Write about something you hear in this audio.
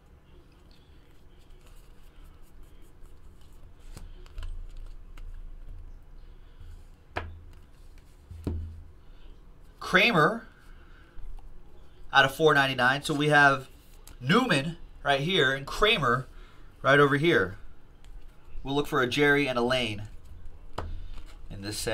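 Trading cards shuffle and flick between hands.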